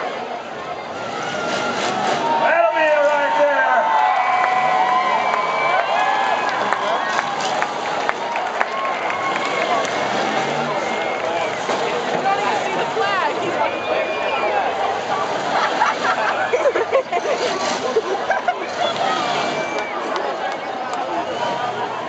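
A large crowd cheers and shouts outdoors in an arena.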